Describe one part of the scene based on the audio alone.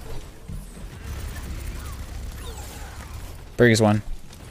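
Gunfire bursts and rumbles from a video game.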